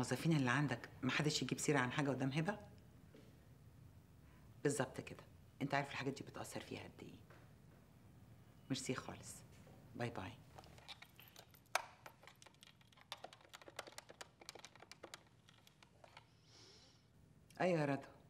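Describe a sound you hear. A woman speaks calmly into a phone, close by.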